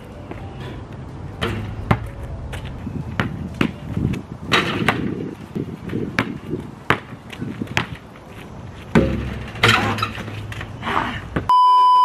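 A basketball bounces on pavement outdoors.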